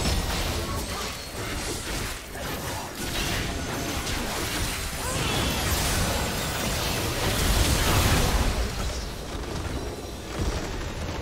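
Magic blasts crackle and whoosh in a fast game battle.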